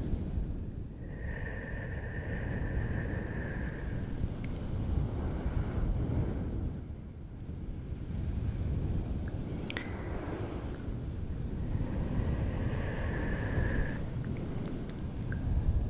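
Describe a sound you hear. Fingers brush and rub over a fluffy windscreen microphone, close up.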